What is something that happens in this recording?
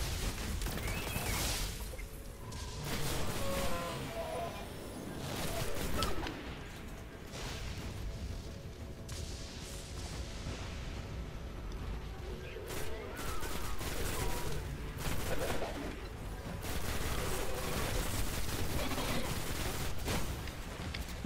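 Gunfire and explosions crackle in loud bursts.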